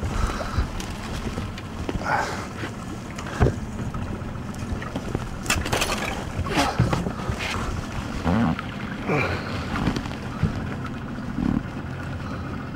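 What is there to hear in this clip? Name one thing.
Water splashes beside a small boat.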